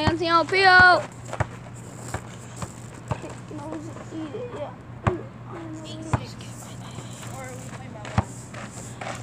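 A basketball bounces on hard ground.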